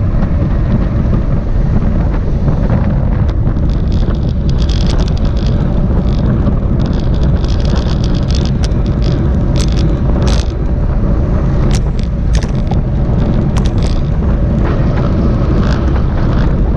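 Strong wind rumbles and buffets loudly outdoors.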